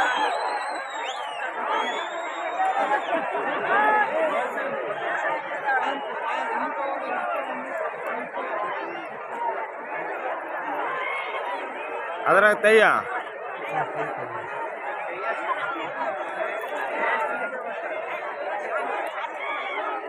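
A large outdoor crowd chatters and calls out loudly.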